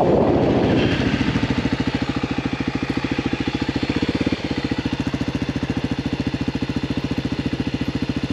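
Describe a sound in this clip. A dirt bike engine idles with a steady putter.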